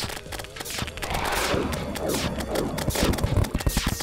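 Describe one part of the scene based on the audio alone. Magical bolts whoosh and crackle as a weapon fires repeatedly.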